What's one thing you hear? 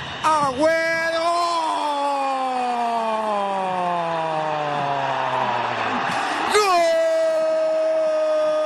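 A large stadium crowd cheers.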